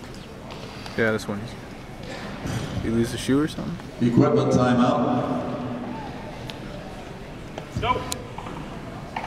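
A man calls out short commands loudly in a large echoing hall.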